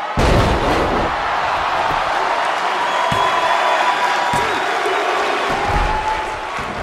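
Heavy thuds of bodies hitting a wrestling mat.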